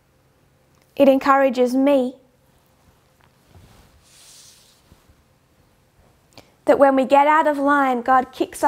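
A woman speaks clearly into a close microphone, in short bursts.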